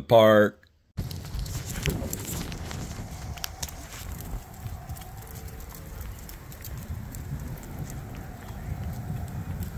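Footsteps walk along a paved path outdoors.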